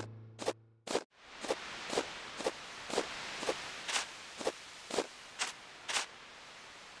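Footsteps patter quickly on the ground.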